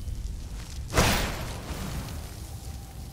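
A spell bursts with a loud crackling whoosh.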